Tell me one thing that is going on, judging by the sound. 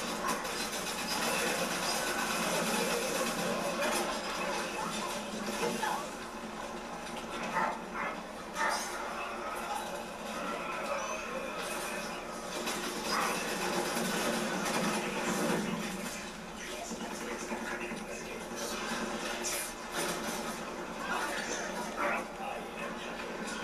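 Gunfire and explosions from a video game play through a television speaker.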